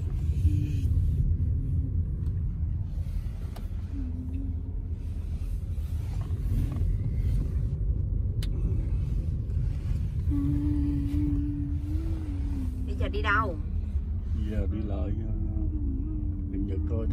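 Road noise rumbles low beneath a moving car.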